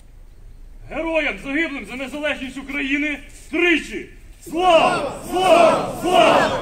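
A group of men sing together outdoors.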